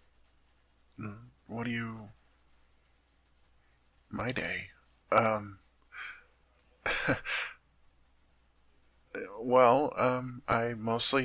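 A young man speaks softly and close to a microphone, in short phrases with pauses.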